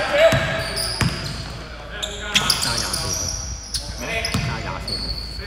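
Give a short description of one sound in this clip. Sneakers squeak sharply on a hardwood floor.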